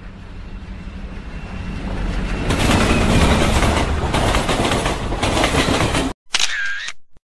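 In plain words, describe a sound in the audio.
A passing freight train roars by close alongside.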